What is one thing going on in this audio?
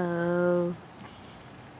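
A young girl speaks softly, close by.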